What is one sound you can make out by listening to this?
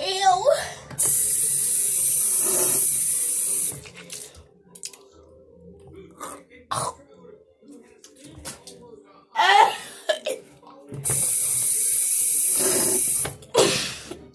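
Water splashes as a boy rinses his mouth.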